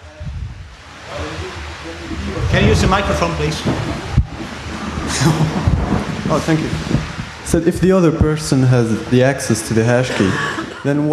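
A man speaks calmly into a microphone over loudspeakers.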